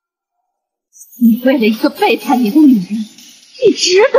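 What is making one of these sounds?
A woman speaks, sounding upset.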